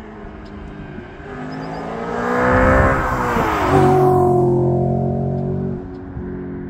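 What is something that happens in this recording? An Audi RS4 with a sport exhaust accelerates hard past, its engine roaring.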